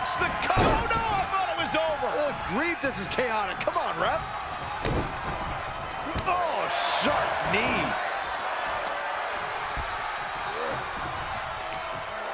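A large crowd cheers and whistles in a big echoing arena.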